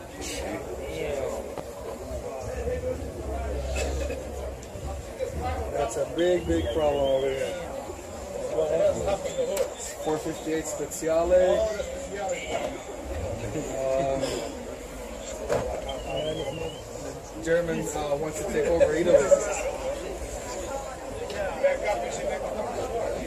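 A crowd of men and women talks and calls out nearby outdoors.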